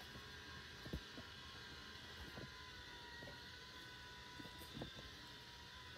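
A robot vacuum bumps softly against a dog.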